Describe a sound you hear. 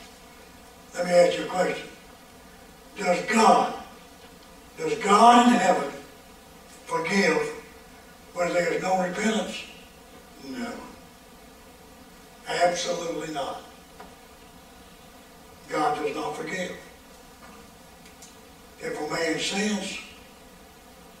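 An elderly man speaks slowly and deliberately through a microphone, in short phrases with pauses.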